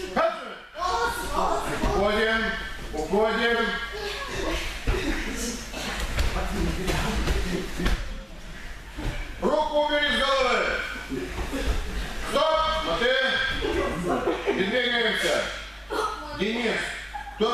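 A man calls out loudly in an echoing hall.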